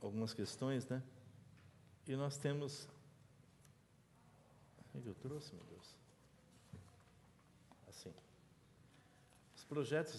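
Paper rustles as a man handles sheets.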